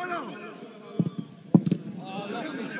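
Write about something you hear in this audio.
A football is struck with a sharp thud.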